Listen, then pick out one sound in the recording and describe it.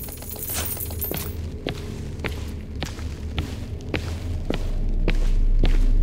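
Footsteps tap on a hard stone floor in a large echoing hall.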